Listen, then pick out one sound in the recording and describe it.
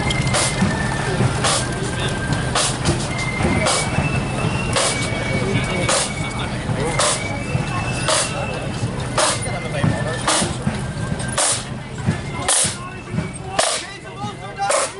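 Bass drums boom in time with the snare drums.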